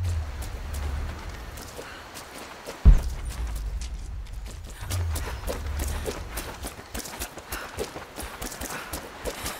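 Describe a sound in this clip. Footsteps crunch on grass and dirt.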